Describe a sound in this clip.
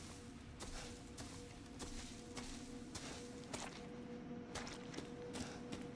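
Footsteps crunch through dry leaves and undergrowth at a steady walking pace.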